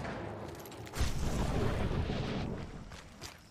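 Gunshots ring out loudly and echo.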